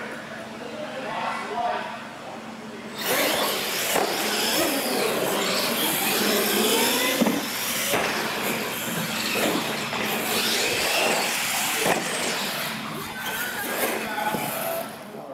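Small electric motors whine at high pitch, rising and falling as toy cars race.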